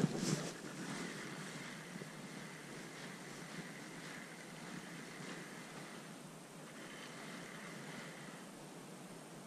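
A fishing reel whirs steadily as line is wound in.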